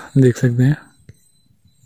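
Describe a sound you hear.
A cow moos in the distance.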